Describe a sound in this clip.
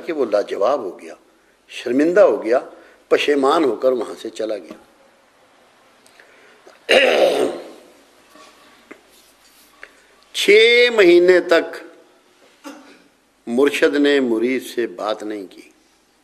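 An elderly man speaks calmly and slowly into a microphone, with pauses.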